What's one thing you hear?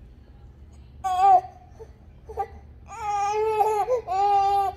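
A baby whimpers and cries in loud, drawn-out wails close by.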